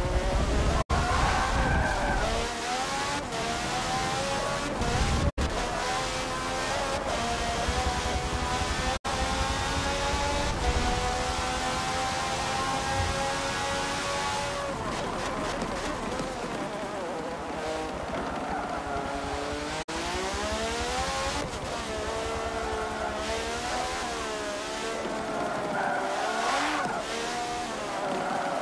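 A racing car engine screams steadily, rising in pitch through the gears and dropping as it slows.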